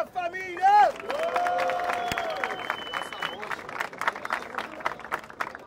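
A crowd cheers and whoops outdoors.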